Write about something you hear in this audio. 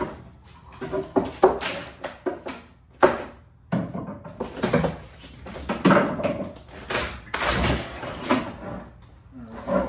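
Metal tools clink and clatter on a workbench.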